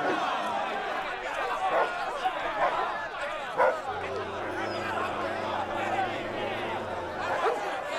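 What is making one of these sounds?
A crowd of men shouts and cheers excitedly close by.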